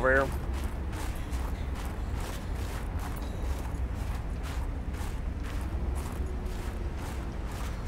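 Footsteps crunch steadily through snow.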